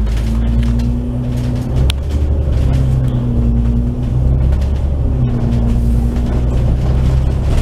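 A bus engine hums low and steady while driving along a road.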